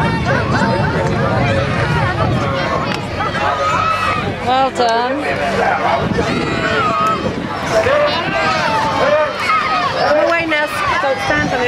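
A crowd of children and adults chatter and call out nearby outdoors.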